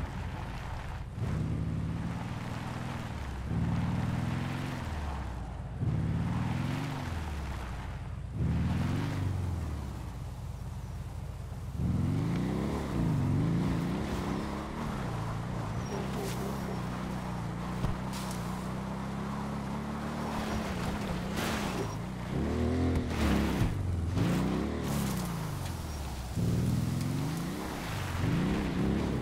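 A quad bike engine revs up and down as it climbs a rough slope.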